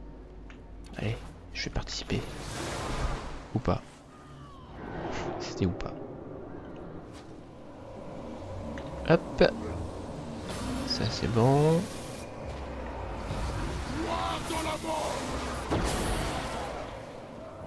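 Magic blasts crackle and boom during a fight.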